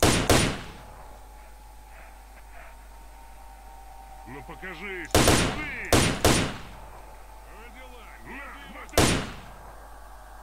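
Gunshots ring out loudly with a short echo.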